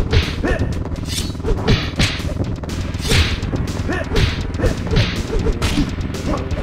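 Punches and kicks land with sharp, heavy smacks in quick bursts.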